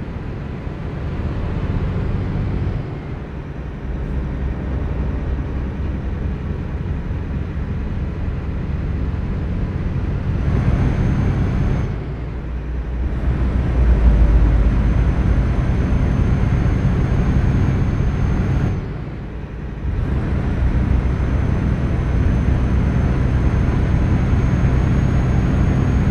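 A truck engine rumbles steadily, dropping off briefly as gears change.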